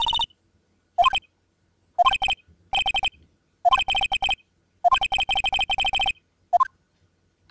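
Rapid electronic blips chatter in short bursts.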